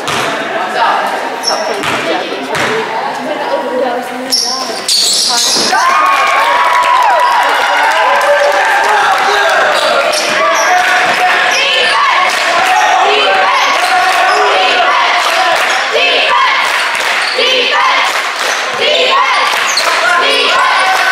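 A crowd of spectators chatters and cheers in a large echoing gym.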